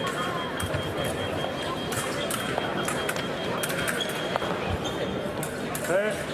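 Fencers' shoes squeak and tap on the floor.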